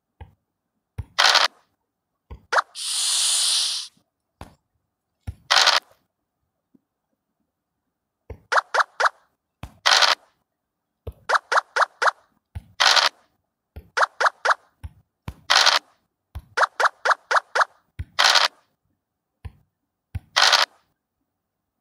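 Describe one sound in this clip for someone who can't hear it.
A die rattles briefly as it rolls in a board game.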